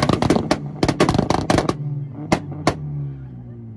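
A car exhaust pops and bangs sharply.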